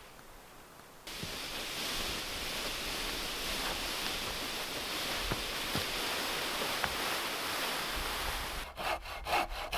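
A branch drags and rustles through dry leaves.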